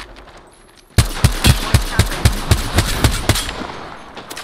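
Rapid gunshots fire in a fast burst and ring out.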